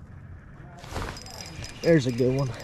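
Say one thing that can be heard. A fishing rod swishes sharply through the air.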